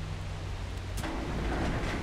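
A button clicks once.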